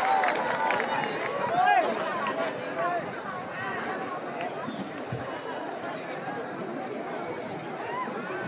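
A large crowd chatters and calls out close by, outdoors.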